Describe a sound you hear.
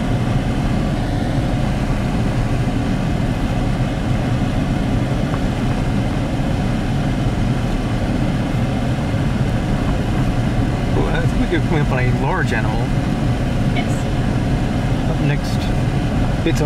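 Tyres rumble on a gravel road.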